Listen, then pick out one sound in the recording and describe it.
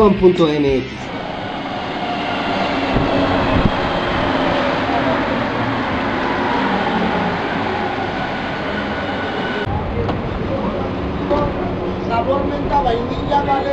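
A metro train rumbles steadily along its rails.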